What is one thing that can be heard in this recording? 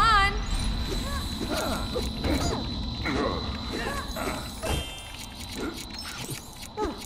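Small coins chime and tinkle as they are collected.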